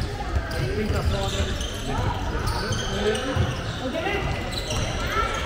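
A handball thumps as it bounces on a hall floor.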